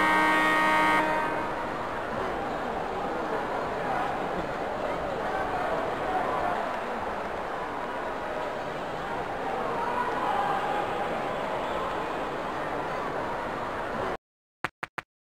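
A large crowd roars steadily in an echoing arena.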